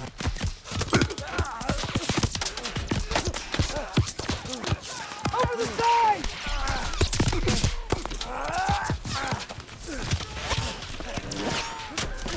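Men shout urgently amid the battle.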